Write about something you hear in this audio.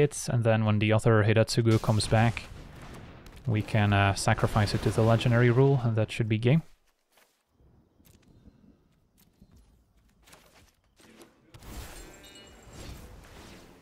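Soft digital chimes and whooshes sound as cards are played.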